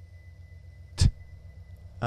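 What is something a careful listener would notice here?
A short electronic click sounds as a menu changes.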